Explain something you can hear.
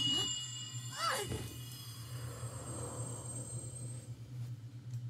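A bright blast whooshes and shimmers.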